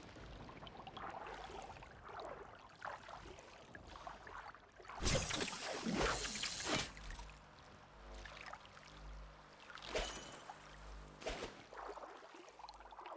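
Water sloshes and splashes around someone wading.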